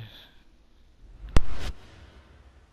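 A deep whoosh ends in a sharp boom.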